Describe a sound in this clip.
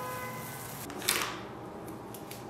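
Masking tape rips as it is pulled off.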